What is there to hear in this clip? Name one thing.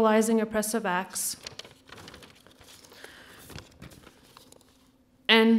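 Paper rustles as a page is turned.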